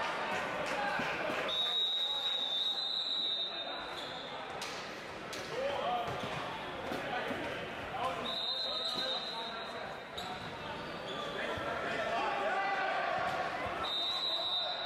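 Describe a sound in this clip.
A crowd murmurs and chatters throughout.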